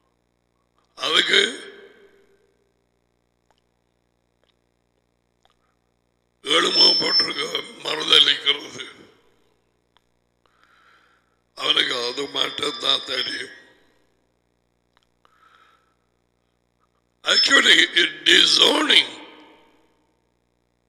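A middle-aged man speaks through a headset microphone in short bursts with long pauses.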